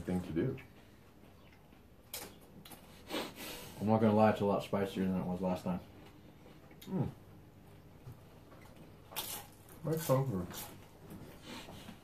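Food crunches as young men chew.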